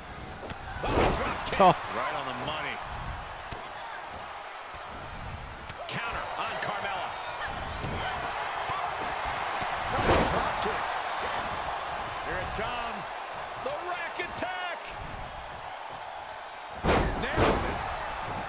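Bodies slam heavily onto a wrestling ring mat.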